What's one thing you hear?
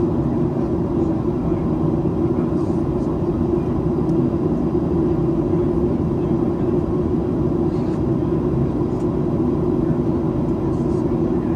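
Jet engines roar steadily in a low, droning rumble inside an aircraft cabin.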